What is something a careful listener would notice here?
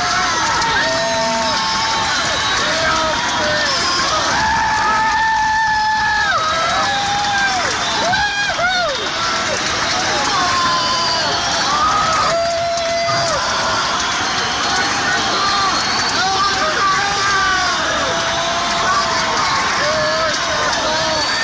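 A singer sings into a microphone through loudspeakers.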